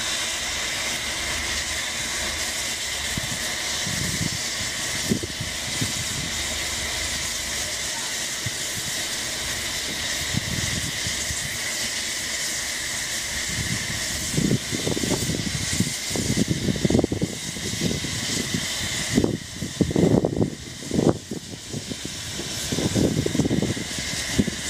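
A steam locomotive hisses steadily outdoors.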